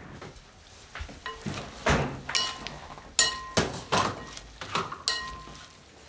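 A spoon scrapes and clinks against a metal pot.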